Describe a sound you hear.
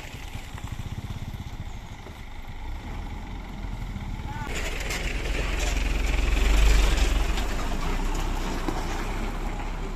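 A truck engine rumbles as the truck drives past close by.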